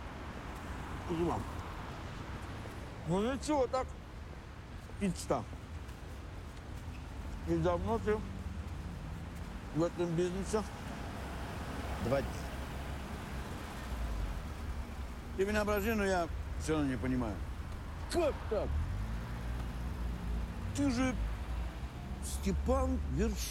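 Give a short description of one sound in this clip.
A man speaks quietly and gruffly nearby.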